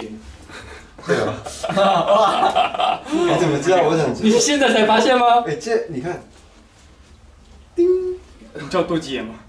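Young men talk and laugh close by, with animation.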